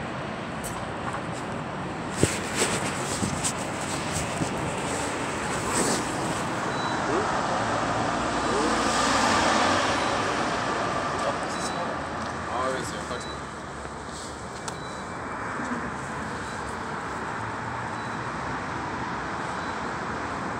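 Traffic hums steadily on a city street outdoors.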